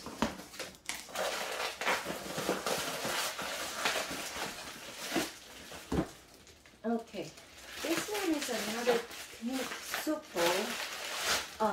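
Plastic bubble wrap crinkles loudly.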